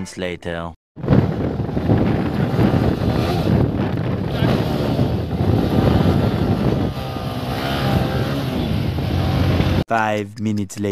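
A motorcycle engine roars and revs loudly.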